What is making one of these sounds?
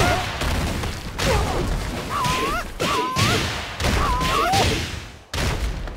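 Heavy punches and kicks thud and smack in quick bursts.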